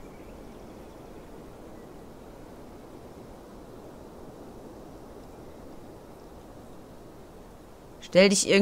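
Wind blows steadily through tall grass outdoors.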